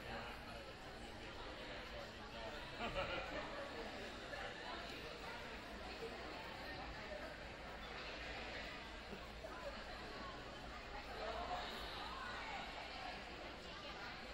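A crowd chatters and murmurs throughout a large echoing gym.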